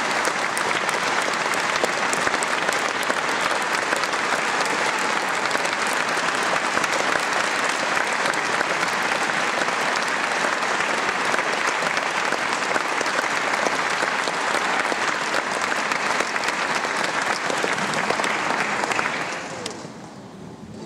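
An audience applauds loudly in a large echoing hall, then the clapping fades away.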